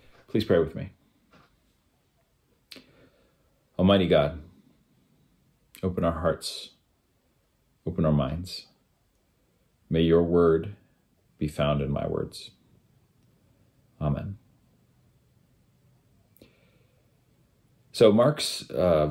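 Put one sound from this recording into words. A man speaks calmly in short phrases with pauses, close to the microphone.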